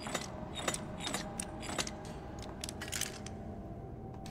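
Metal dials of a lock click as they turn.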